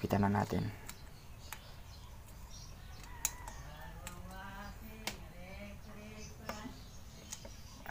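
A metal tool clicks and scrapes against an engine casing.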